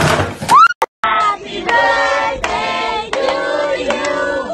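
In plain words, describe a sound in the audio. A group of people sings together loudly.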